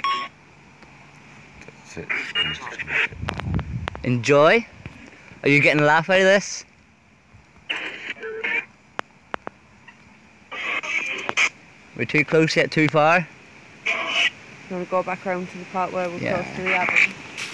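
A spirit box app plays choppy bursts of radio voices and static through a small phone speaker.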